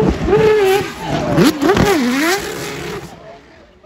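Tyres squeal on asphalt as a car slides sideways.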